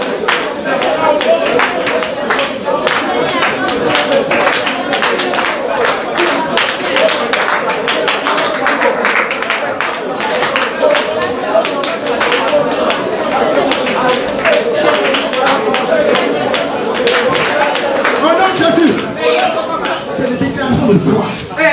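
A crowd of women sings loudly together.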